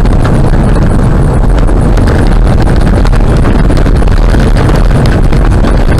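Gravel rattles against the underside of a car.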